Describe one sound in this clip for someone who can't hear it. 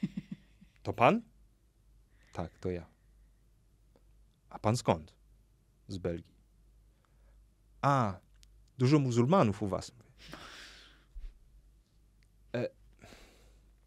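A young man speaks with animation in short bursts, close to a microphone.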